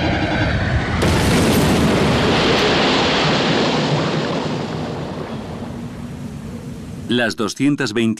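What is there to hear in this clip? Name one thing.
A huge explosion booms across the sea and rumbles away slowly.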